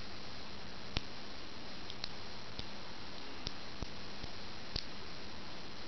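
Small magnetic balls click together.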